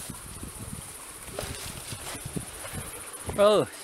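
A stream trickles softly over rocks nearby.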